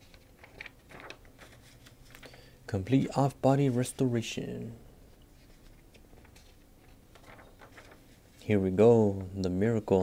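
Glossy magazine pages rustle and flip as they are turned.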